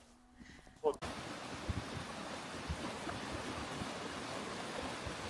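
A river rushes and gurgles steadily.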